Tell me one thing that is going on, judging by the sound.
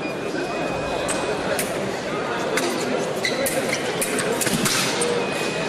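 Fencing blades click and clash.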